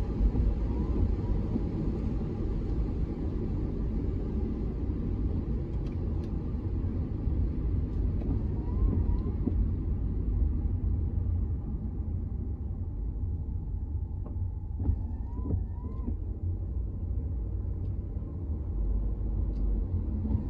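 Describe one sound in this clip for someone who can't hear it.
A car drives on a wet road, heard from inside.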